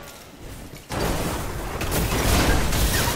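A rifle fires a rapid burst of shots.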